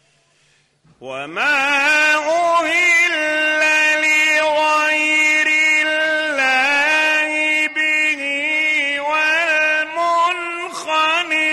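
An elderly man chants in a long, sustained, wavering voice, heard through an old recording.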